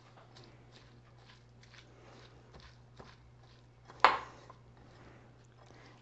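Hands squish and mix wet chopped vegetables in a bowl.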